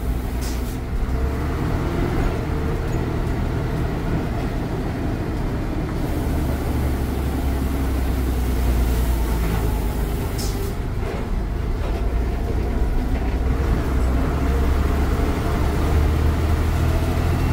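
A bus engine rumbles loudly and steadily from close by.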